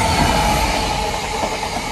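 A diesel locomotive engine roars loudly as it passes.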